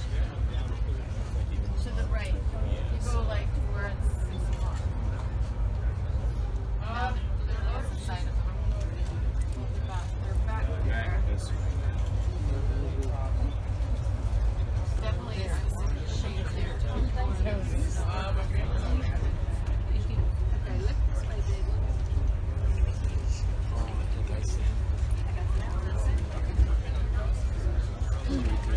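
A train rumbles steadily along its tracks, heard from inside a carriage.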